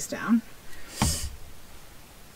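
A plastic glue bottle sputters as it is squeezed.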